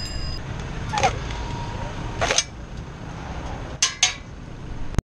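A machete chops into a coconut with sharp knocks.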